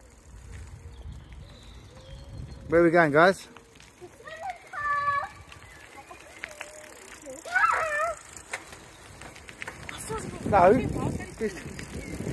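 Bicycle tyres roll on asphalt.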